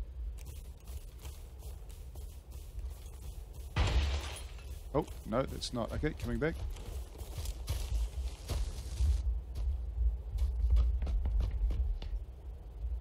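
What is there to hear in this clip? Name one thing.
Footsteps run through grass and over dirt.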